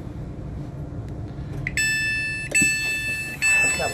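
A button clicks as it is pressed.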